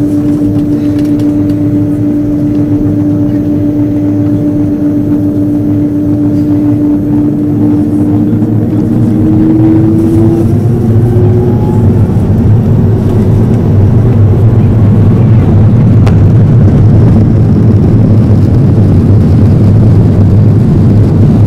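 Aircraft wheels rumble over the runway.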